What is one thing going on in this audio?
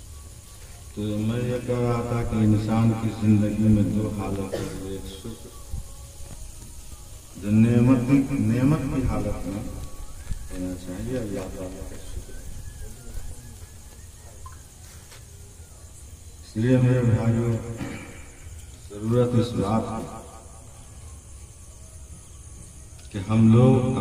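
An elderly man chants melodiously into a microphone over a loudspeaker, in long phrases with pauses.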